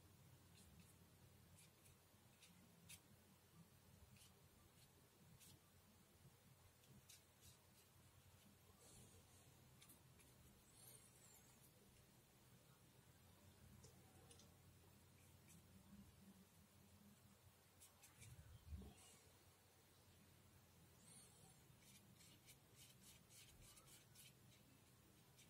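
A paintbrush dabs and strokes softly on paper.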